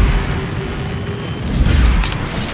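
A jetpack roars with a rushing hiss.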